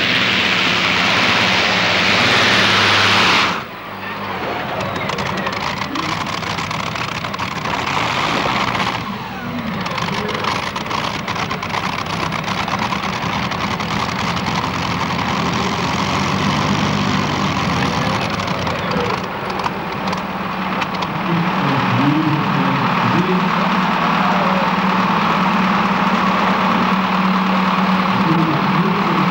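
A loud tractor engine rumbles and roars steadily at idle.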